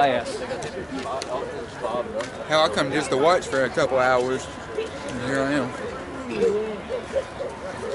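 A young man talks loudly close by, outdoors.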